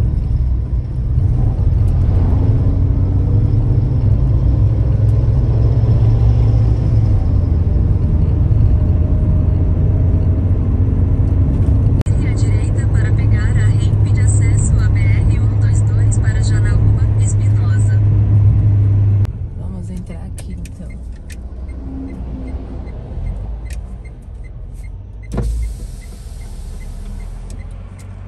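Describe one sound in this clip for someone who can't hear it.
A car drives along with a loud, steady rumble that drops quieter partway.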